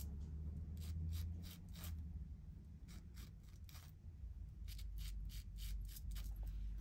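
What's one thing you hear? Scissors snip hair in quick, crisp cuts.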